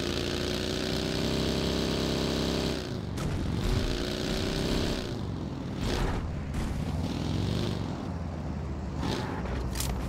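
A buggy engine roars and revs as it drives over rough ground.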